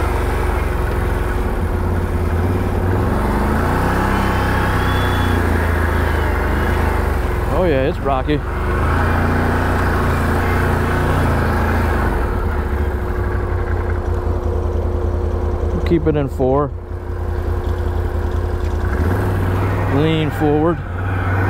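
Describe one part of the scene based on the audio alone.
An all-terrain vehicle's engine rumbles steadily, rising and falling as it climbs.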